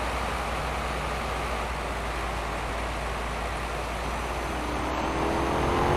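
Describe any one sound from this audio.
A bus engine hums steadily and rises in pitch near the end.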